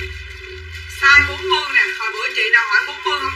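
A middle-aged woman talks with animation close to a microphone.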